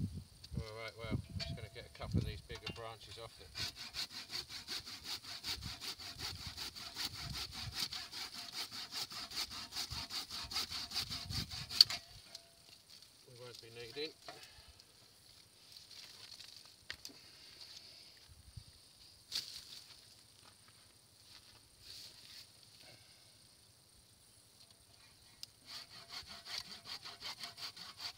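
A hand saw rasps back and forth through wood in a quick, steady rhythm.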